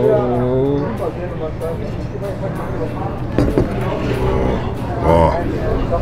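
A metal ladle clinks against a clay pot.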